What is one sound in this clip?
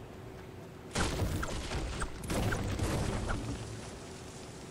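An axe chops repeatedly into wood.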